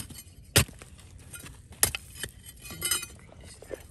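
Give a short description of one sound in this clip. A slab of rock cracks and shifts.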